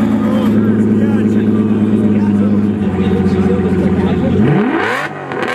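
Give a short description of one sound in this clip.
A V12 sports car idles with a deep burble.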